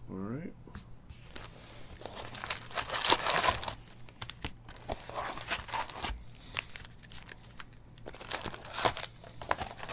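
Foil card packs rustle and crinkle as they are handled.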